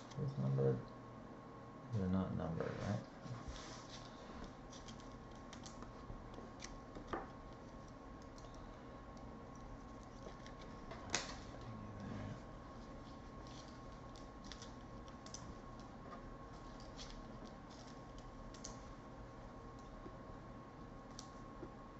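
Plastic wrappers crinkle and rustle in hands.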